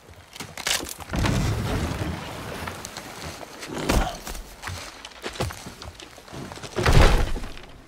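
Water rushes and splashes nearby.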